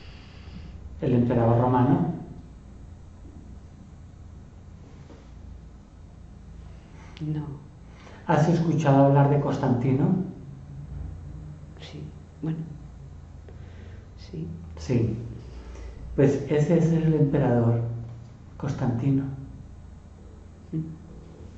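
An elderly man speaks calmly and slowly up close, with pauses.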